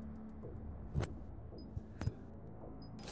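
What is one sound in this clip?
Short interface clicks sound as menu options are selected.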